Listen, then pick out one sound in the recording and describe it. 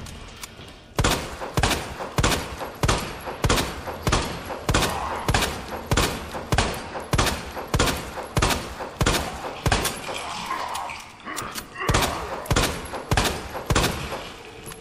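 A handgun fires shot after shot in quick succession, echoing down a corridor.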